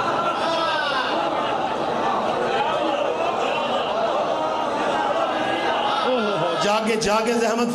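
A man sings a mournful chant with deep feeling through a microphone.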